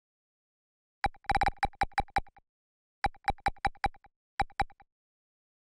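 Short electronic clicks tick rapidly as a menu cursor moves.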